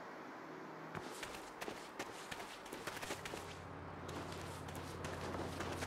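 Footsteps crunch quickly over gravel and dry ground.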